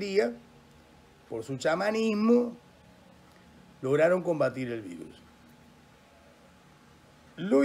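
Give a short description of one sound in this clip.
An elderly man speaks calmly and close up, with pauses between phrases.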